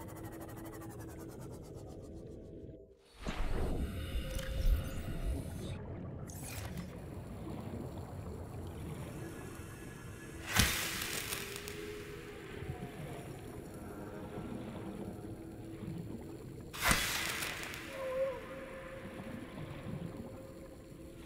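A hot vent bubbles and rumbles steadily underwater.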